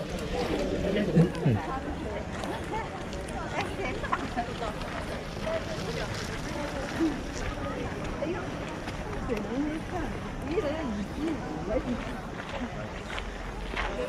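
Young women chat quietly nearby outdoors.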